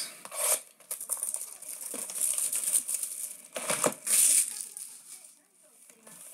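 Plastic wrapping crinkles and rustles as it is torn off a box.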